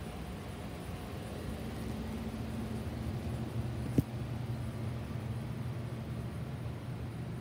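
A furnace rumbles low and steadily.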